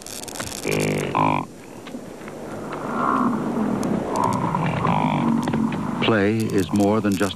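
A bison calf bleats loudly.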